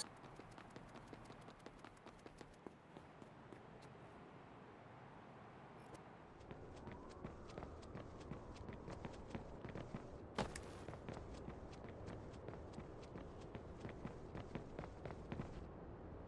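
Quick footsteps crunch on gravel.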